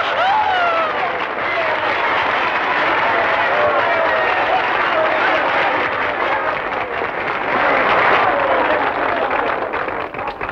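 A crowd cheers and shouts with excitement.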